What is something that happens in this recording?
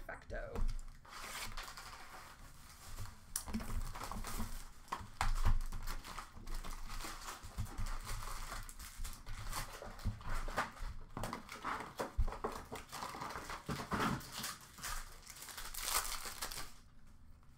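Plastic card wrappers crinkle and rustle as hands handle them.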